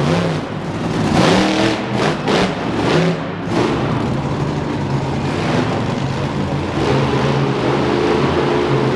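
A monster truck engine roars and revs loudly.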